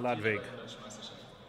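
A young man speaks briefly and cheerfully close by.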